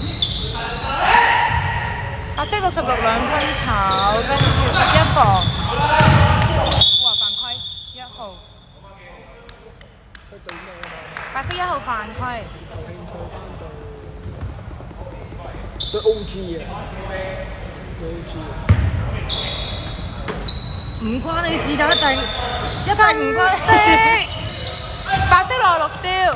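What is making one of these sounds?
Sneakers squeak sharply on a wooden court in a large echoing hall.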